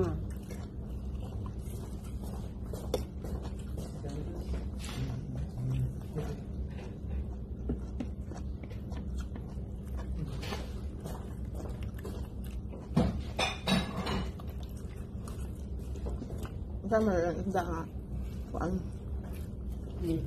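Cutlery clinks against dishes.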